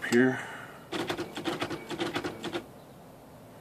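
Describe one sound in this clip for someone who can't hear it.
An electric typewriter prints with a rapid mechanical chatter.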